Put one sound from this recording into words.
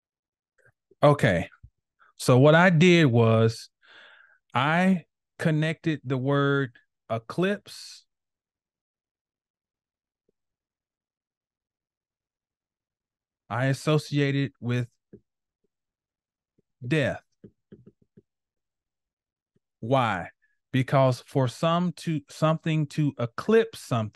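A man speaks calmly into a close microphone, heard through an online call.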